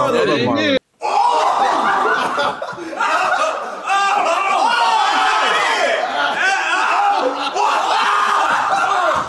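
Young men shout and laugh excitedly.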